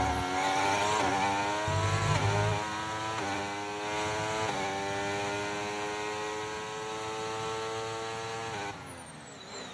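A racing car engine screams at high revs, rising in pitch through quick gear changes.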